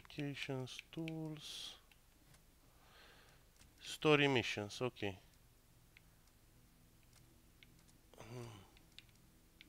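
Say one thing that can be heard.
A man talks casually into a close microphone in short bursts.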